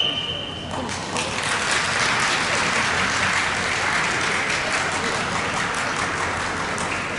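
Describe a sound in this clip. A seated crowd applauds.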